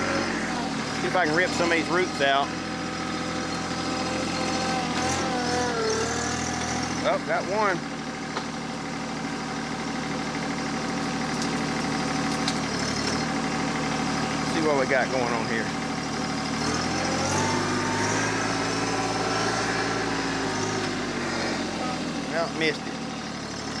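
A loader's hydraulics whine in short bursts.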